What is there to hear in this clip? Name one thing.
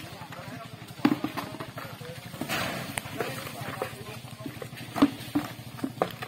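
Objects knock and clatter on the ground.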